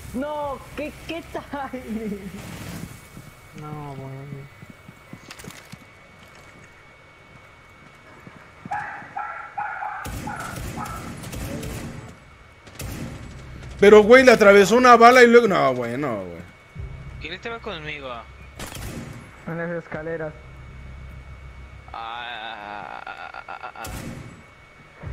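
Gunshots crack in short bursts.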